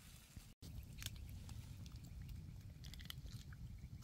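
Plastic crinkles as meat is handled close by.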